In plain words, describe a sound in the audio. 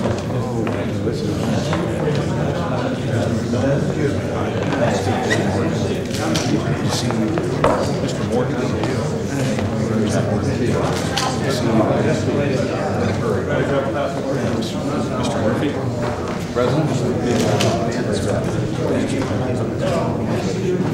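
Several men and women chat in a busy room.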